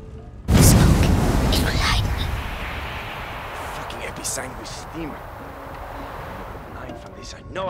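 Steam bursts out with a loud, rushing hiss that slowly fades.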